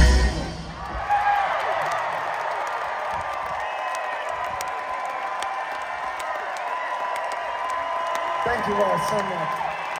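A large crowd cheers and whistles in a big open space.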